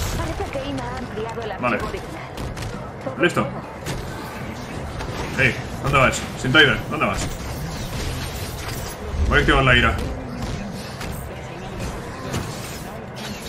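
A large creature punches and smashes enemies with heavy thuds.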